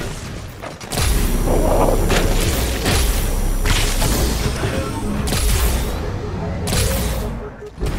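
A plasma rifle fires rapid shots.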